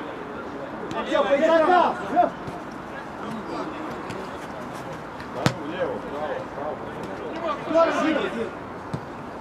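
Men shout to each other outdoors across an open field.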